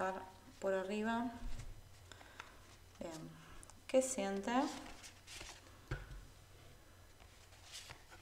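Playing cards rustle and slap softly as they are shuffled.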